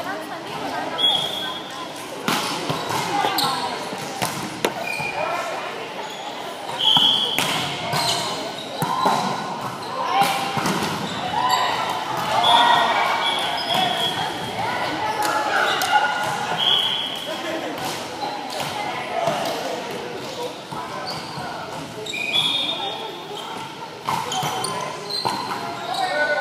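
Sneakers squeak sharply on the wooden floor.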